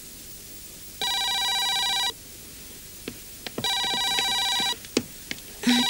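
A telephone rings loudly.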